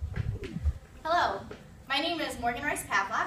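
A young woman speaks calmly in a room.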